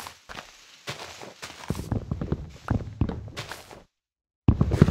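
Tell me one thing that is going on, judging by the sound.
An axe chops at wood with quick knocks.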